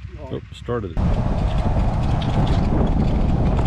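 A golf cart hums and rattles along a paved path.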